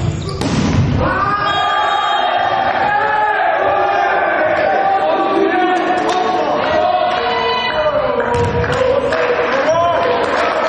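Young men shout and cheer in an echoing hall.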